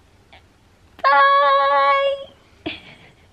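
A young woman calls out in a long, drawn-out, sing-song voice close by.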